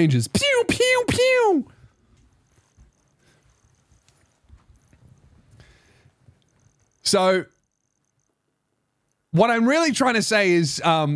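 A man speaks with animation close to a microphone, in bursts with pauses.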